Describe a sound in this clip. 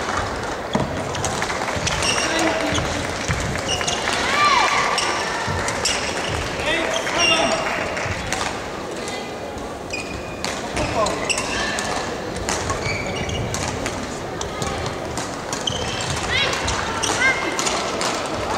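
A large indoor hall echoes with a busy murmur.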